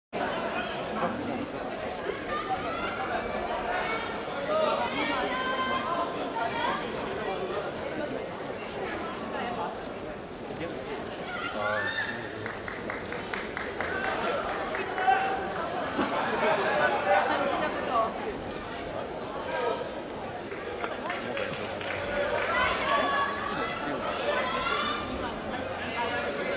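A large crowd murmurs and shouts in a big echoing arena.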